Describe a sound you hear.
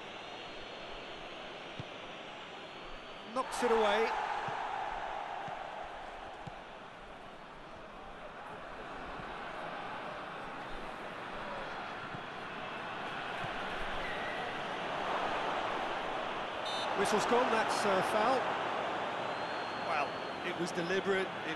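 A large stadium crowd roars and cheers, swelling loudly at moments.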